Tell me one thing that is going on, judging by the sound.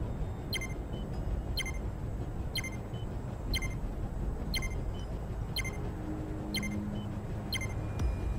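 A countdown timer beeps once every second.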